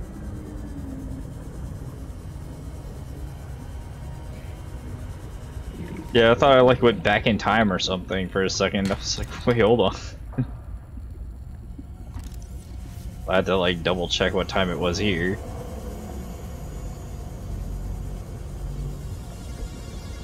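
A submarine hums low and steadily as it moves underwater.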